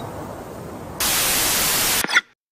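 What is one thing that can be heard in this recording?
Loud television static hisses and then cuts off.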